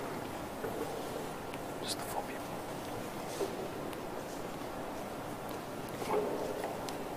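A man speaks quietly near the front of an echoing hall.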